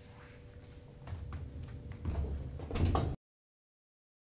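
Footsteps tread across a wooden floor.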